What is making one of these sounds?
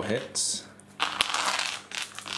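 Dice rattle in a cupped hand.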